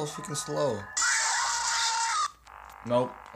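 A loud screech blares from a game.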